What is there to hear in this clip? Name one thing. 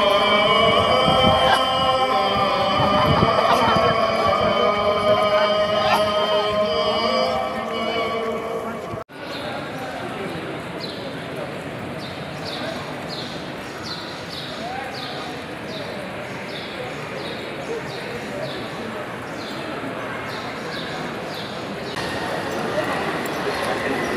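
Many people murmur and chatter in a busy crowd.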